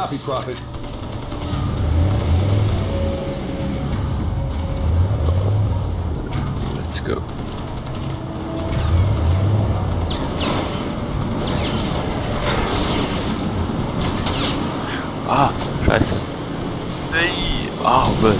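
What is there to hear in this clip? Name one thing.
A vehicle engine rumbles and revs as the vehicle drives.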